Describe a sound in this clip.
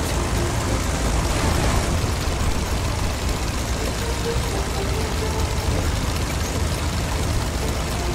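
A tank engine rumbles steadily as it drives along.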